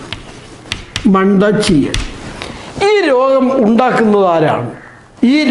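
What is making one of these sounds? A middle-aged man speaks clearly and calmly, close by.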